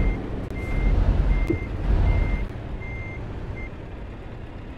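A warning chime beeps several times in quick succession.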